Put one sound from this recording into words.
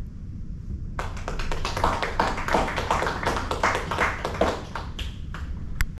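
A small group of people clap their hands.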